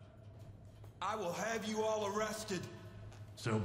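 A man replies firmly.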